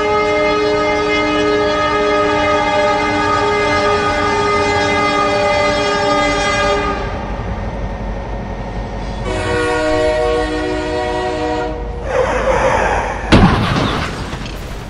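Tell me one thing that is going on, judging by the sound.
A locomotive engine rumbles low and steady.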